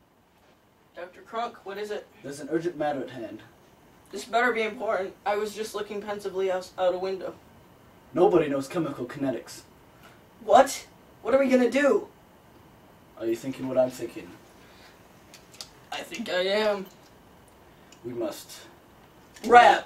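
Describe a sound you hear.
A second young man answers nearby.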